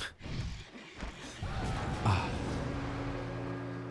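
A man laughs loudly into a microphone.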